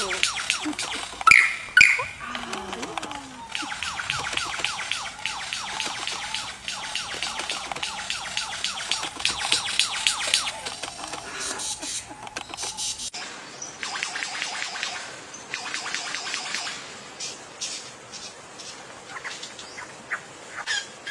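A lyrebird sings loud, rapid, varied calls and trills close by.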